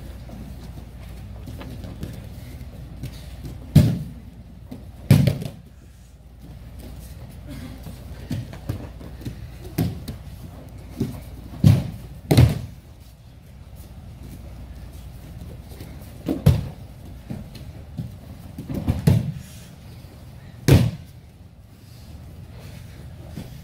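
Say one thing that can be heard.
Bare feet slide and shuffle on a mat.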